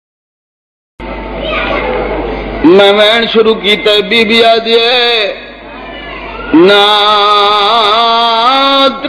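A man sings a lament loudly through a microphone, with echo.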